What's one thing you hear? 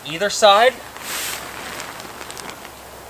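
Heavy canvas rustles and flaps as a man lifts it.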